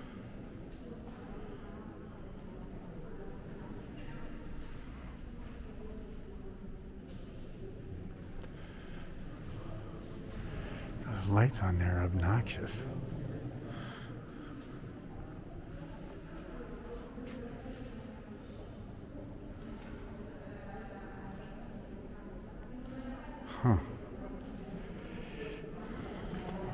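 Visitors murmur quietly in a large echoing hall.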